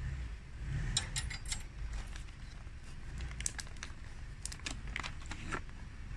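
A hand grinder's crank clicks and turns.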